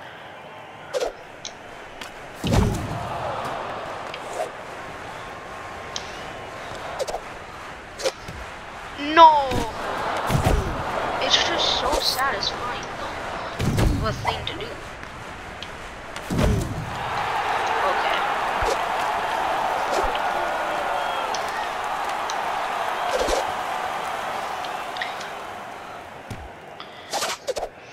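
Hockey sticks smack a puck with sharp clacks.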